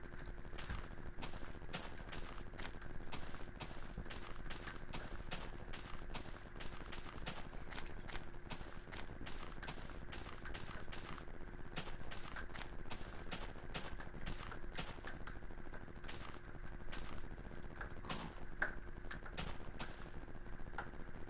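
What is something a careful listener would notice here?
Short crisp clicks sound as grass is quickly broken, one after another.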